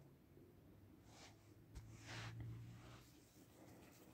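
A soft whoosh sweeps by as cards slide into place.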